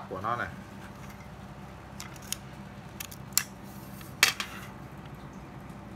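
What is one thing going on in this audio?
Metal fittings on a fishing rod click and rattle as they are handled.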